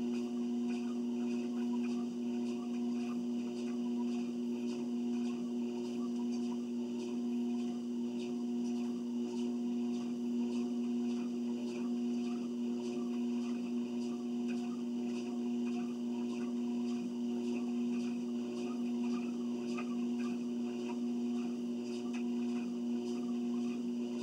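An electric treadmill motor hums.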